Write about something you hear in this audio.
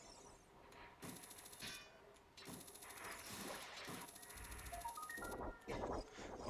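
A video game chain launcher fires with a rapid metallic rattle.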